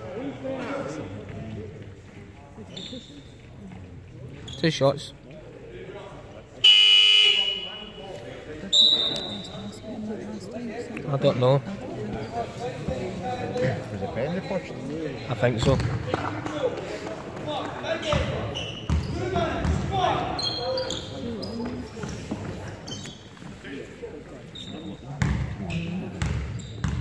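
Young men shout and call out in an echoing sports hall.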